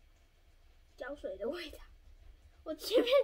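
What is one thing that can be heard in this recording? A young girl speaks brightly and close by.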